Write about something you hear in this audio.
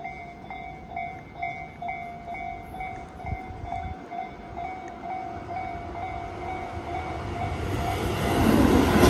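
A railway crossing bell dings in a steady, rapid rhythm.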